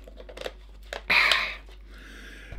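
A man lets out a loud breath after drinking.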